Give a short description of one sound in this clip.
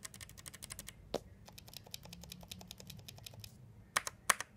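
Fingers rapidly tap mechanical key switches, making light clicks.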